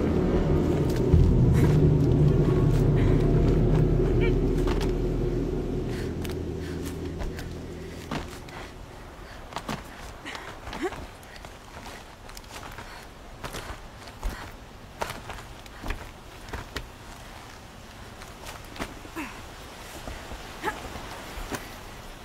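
A climber's hands and feet scrape and knock on rock.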